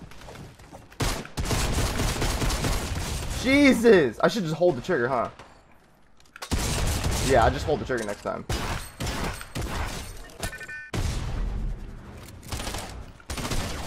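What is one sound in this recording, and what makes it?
Gunfire from a game crackles in rapid bursts.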